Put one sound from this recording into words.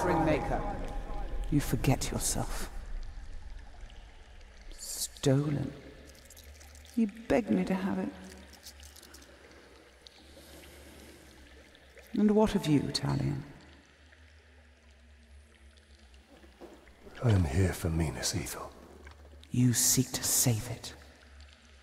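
A woman speaks slowly and coldly, close by.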